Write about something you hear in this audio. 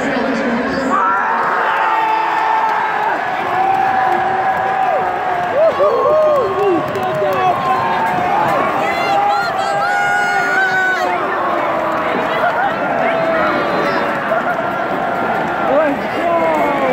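Men shout and cheer close by.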